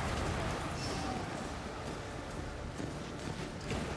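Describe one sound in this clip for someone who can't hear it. A fire crackles and roars.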